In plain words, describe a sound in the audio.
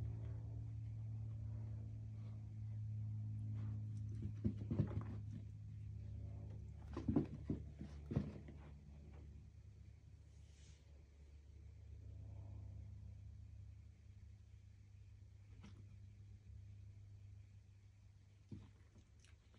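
A small dog's paws scuffle and thump on a rug.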